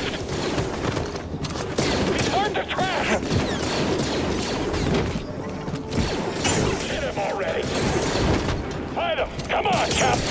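Blaster bolts fire with sharp zaps.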